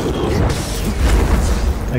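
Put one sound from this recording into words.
A laser sword hums and swooshes.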